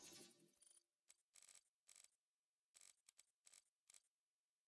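Short menu clicks and blips sound as options are selected.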